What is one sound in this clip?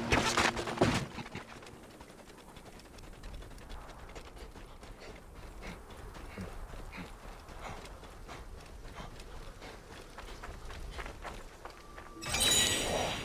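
Footsteps run quickly over sand.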